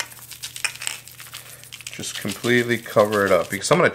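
Seasoning rattles from a shaker as it is sprinkled.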